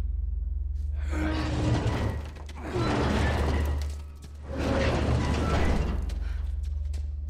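A heavy metal door scrapes and grinds as it is shoved open.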